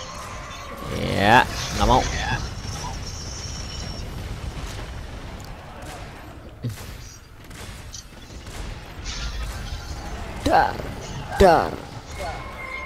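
A huge beast lets out loud, screeching roars.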